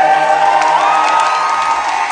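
A young man sings loudly into a microphone.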